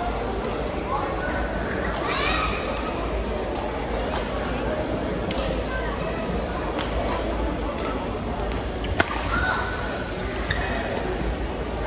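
Sports shoes squeak on a court floor.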